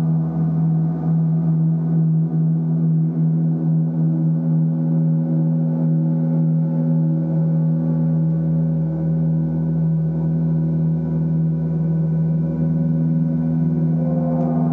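Large gongs hum and shimmer with a deep, steady, swelling drone.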